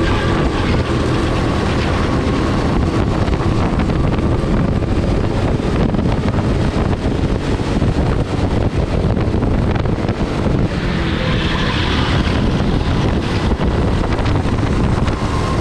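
Wind rushes hard past the microphone.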